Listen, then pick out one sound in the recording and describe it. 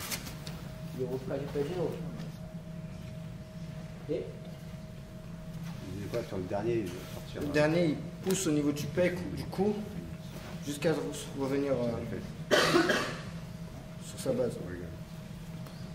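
A man speaks calmly to a group nearby.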